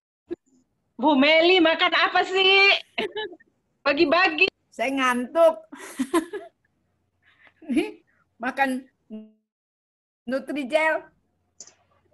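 A young woman speaks calmly and close by, with short pauses.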